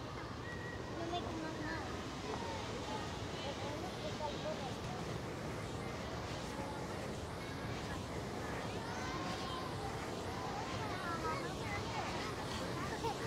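A crowd of men and women chatter in the distance outdoors.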